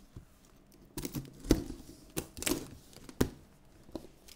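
Cardboard box flaps thump and scrape open.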